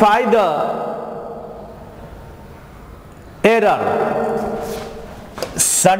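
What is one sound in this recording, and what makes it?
A man speaks with animation into a close microphone, in a room with some echo.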